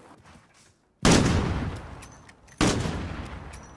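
Loud gunshots blast with a booming echo.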